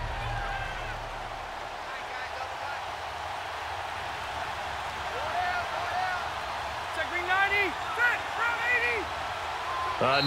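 A large crowd murmurs steadily.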